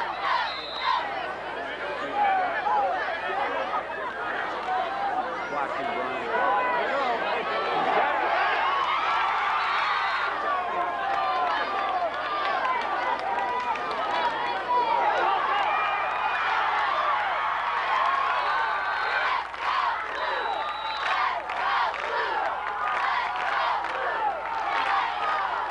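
A crowd of people chatters and cheers loudly nearby, outdoors.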